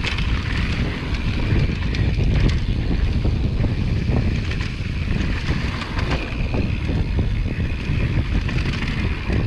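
Bicycle tyres rumble and crunch over a dry dirt trail.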